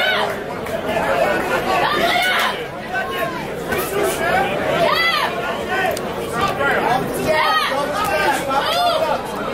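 Boxing gloves thud against each other and a body.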